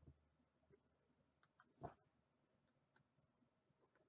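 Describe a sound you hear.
A finger presses stickers onto a card with soft taps.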